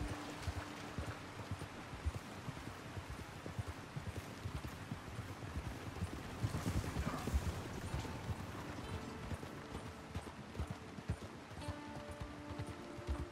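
A horse gallops, its hooves thudding on the ground.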